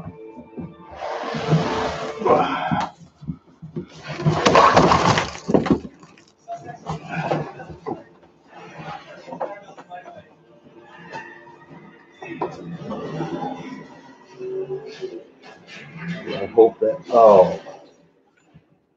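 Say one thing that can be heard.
A man handles and shifts a cardboard box, its flaps rustling and scraping.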